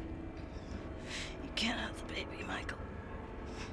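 A young woman gasps and breathes heavily close by.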